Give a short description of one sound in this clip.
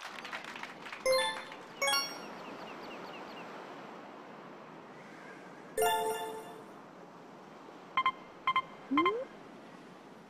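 Short bright electronic chimes ring out several times.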